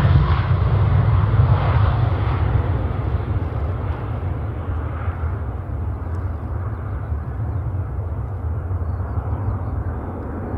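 A large jet airliner's engines roar loudly at full thrust as it takes off and climbs away.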